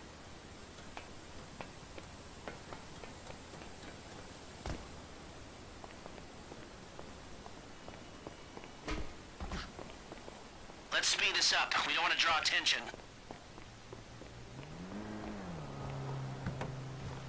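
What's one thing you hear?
Footsteps tap on hard floors and stairs.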